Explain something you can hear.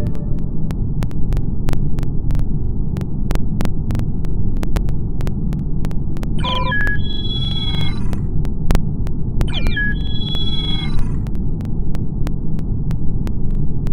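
Soft keyboard taps click rapidly.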